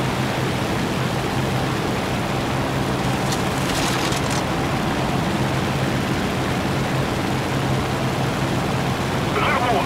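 A propeller plane's engine drones steadily throughout.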